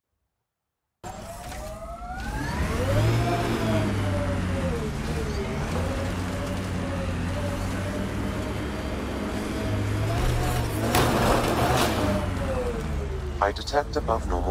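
A vehicle engine revs and hums, rising and falling in pitch.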